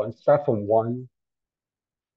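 A man speaks briefly through a microphone, then falls silent.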